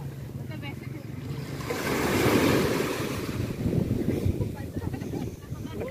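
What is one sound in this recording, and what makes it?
Waves wash up onto the shore and break in foaming surf.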